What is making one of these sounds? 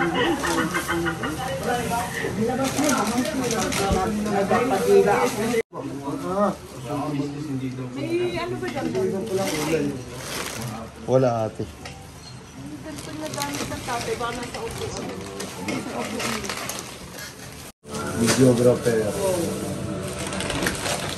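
Plastic wrappers crinkle and rustle as hands handle them.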